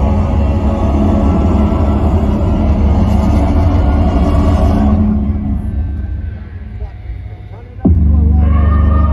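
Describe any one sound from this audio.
A rock band plays loudly through large outdoor speakers.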